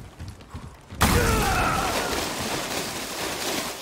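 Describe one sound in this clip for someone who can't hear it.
Water splashes loudly as something plunges in.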